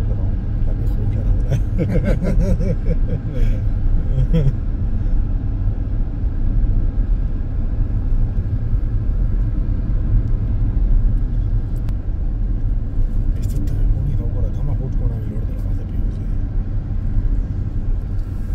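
Tyres roll steadily on smooth asphalt.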